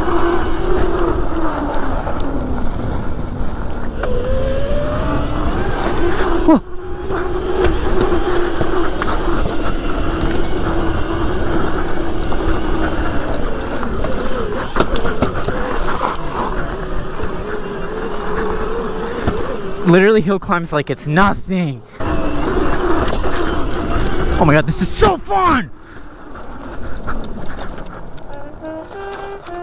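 A motorbike engine drones steadily close by.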